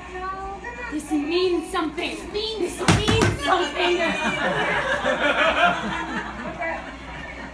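A young woman talks with animation.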